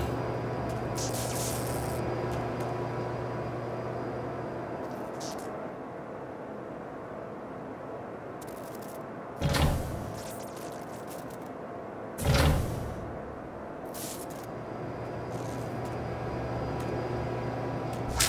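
Steam hisses from a vent.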